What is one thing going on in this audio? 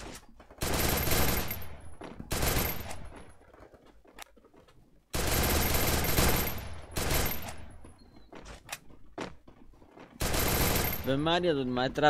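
Gunfire bursts loudly in a video game.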